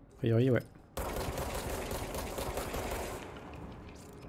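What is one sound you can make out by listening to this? Gunfire crackles in a quick burst.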